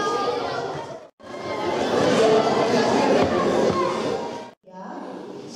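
Children chatter and shout in a lively crowd.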